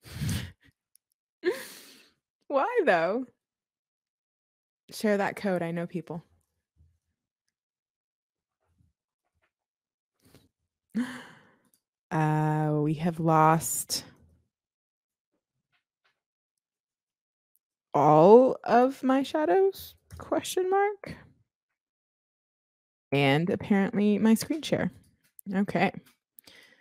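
A young woman talks into a close microphone in short bursts with pauses.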